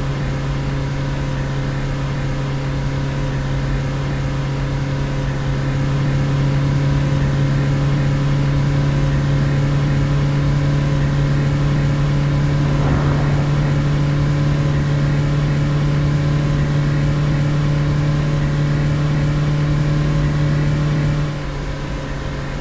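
Tyres roll with a low rumble on a highway.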